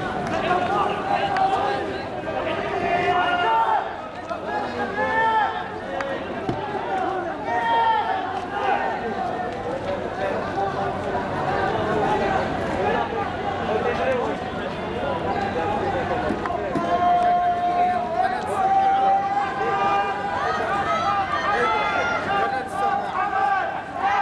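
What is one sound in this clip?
A crowd of young men shouts and chants loudly nearby, outdoors.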